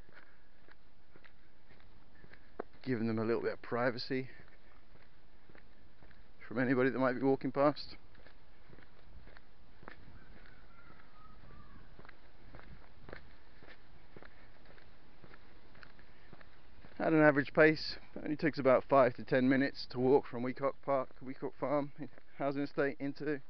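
Footsteps crunch slowly on a path.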